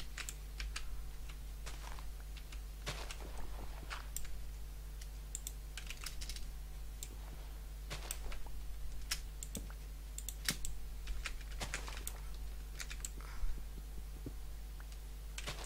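Soft crunching thuds sound repeatedly as dirt is dug away with a pickaxe.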